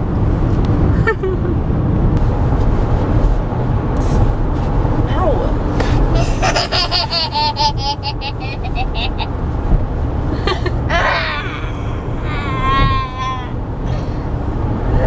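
A car's engine and road noise rumble steadily.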